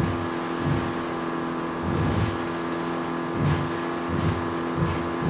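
Water splashes and slaps against a boat's hull.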